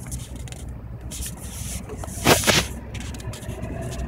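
Fingers rub and knock against a handheld microphone.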